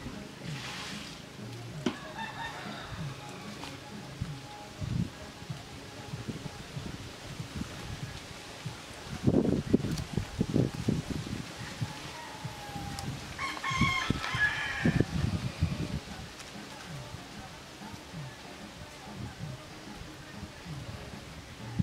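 Leaves rustle softly in a light breeze outdoors.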